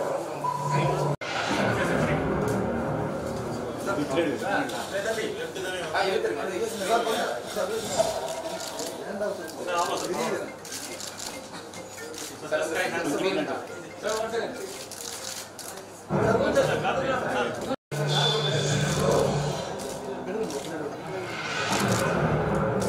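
Several men talk and murmur nearby in an indoor room.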